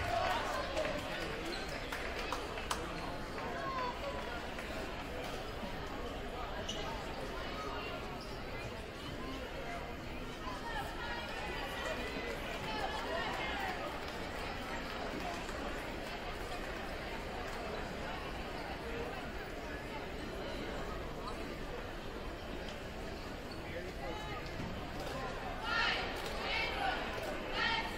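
A large crowd chatters steadily in an echoing gym.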